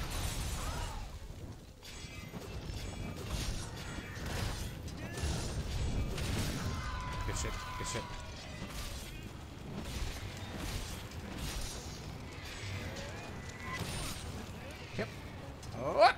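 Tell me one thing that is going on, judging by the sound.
A large creature roars and growls.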